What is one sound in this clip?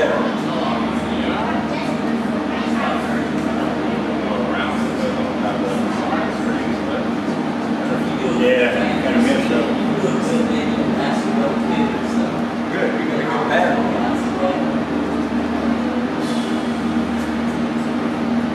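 An elderly man speaks calmly and quietly nearby.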